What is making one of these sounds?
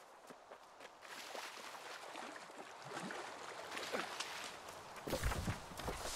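Water splashes as someone wades through a stream.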